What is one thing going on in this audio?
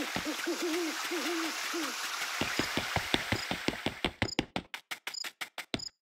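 Footsteps tap quickly on stone paving.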